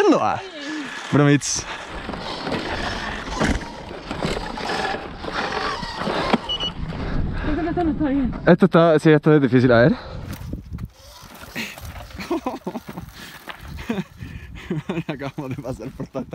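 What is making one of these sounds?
Bike tyres crunch and rattle over loose rocks and gravel.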